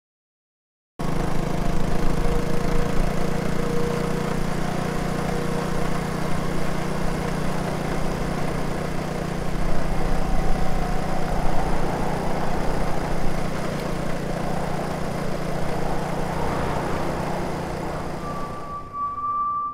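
A motor scooter engine hums steadily as it rides along.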